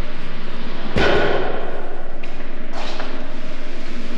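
A stall door swings open.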